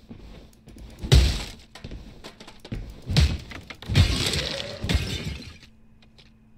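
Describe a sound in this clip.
Heavy hammer blows land with loud thuds.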